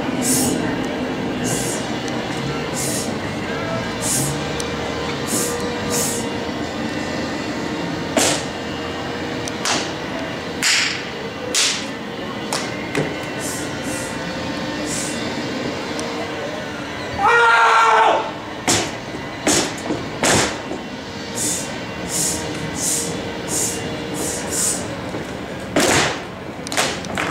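Music with a steady beat plays loudly over outdoor loudspeakers.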